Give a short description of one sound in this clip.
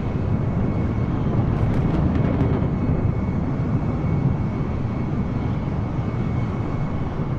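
A jet airliner's engines roar steadily in flight.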